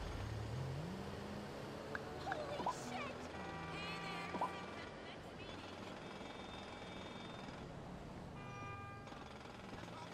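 A phone beeps softly as its buttons are pressed.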